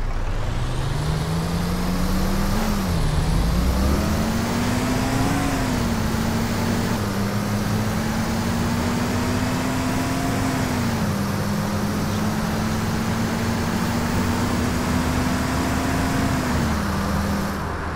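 Tyres roll along the road with a steady rush.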